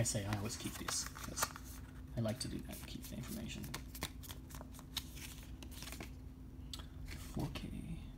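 Paper and card rustle in hands.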